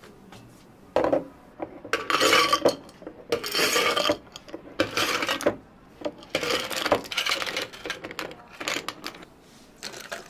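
Ice cubes clatter loudly into glass jars.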